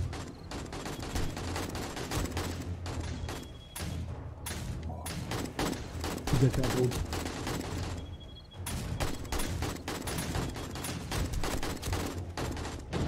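A machine gun fires rapid bursts of shots.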